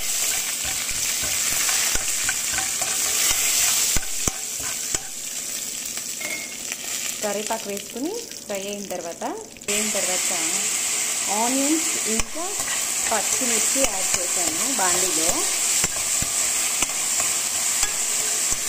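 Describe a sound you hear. A metal spoon scrapes and stirs in a pan.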